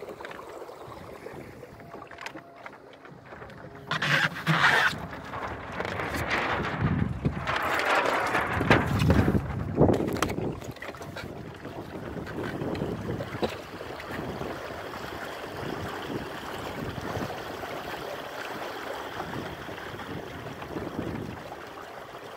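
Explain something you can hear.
Water splashes and laps against a small boat's hull.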